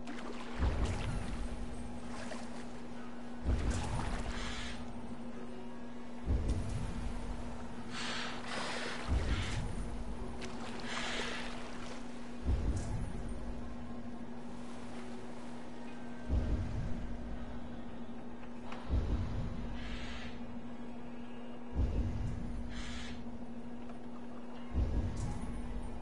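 A paddle splashes through water in slow, regular strokes.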